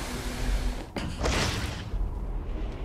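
A heavy cloth cape whooshes through the air.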